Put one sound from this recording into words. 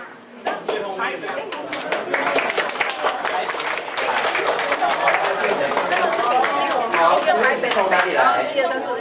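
A group of people clap their hands.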